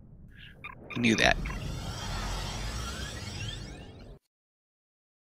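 A teleport beam shimmers with a rising, sparkling hum.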